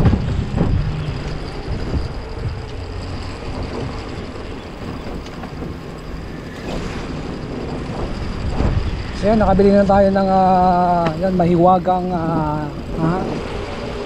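Bicycle tyres hum on pavement.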